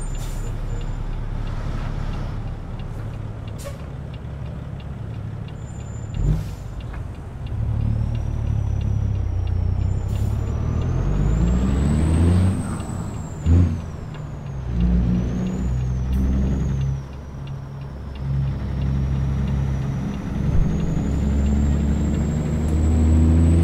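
A diesel semi-truck engine pulls through the gears.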